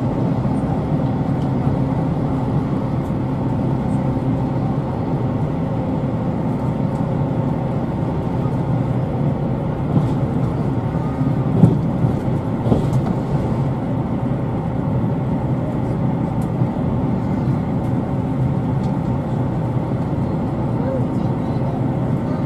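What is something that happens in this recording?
A passing train rushes by outside.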